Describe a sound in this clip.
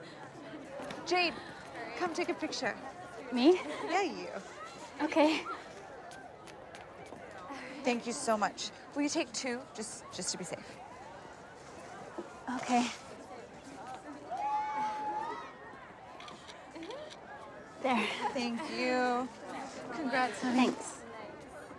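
Young women chatter and laugh excitedly close by.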